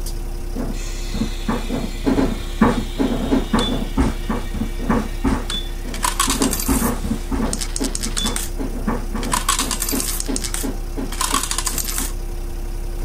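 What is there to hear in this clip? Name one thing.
Footsteps thump on a bus floor.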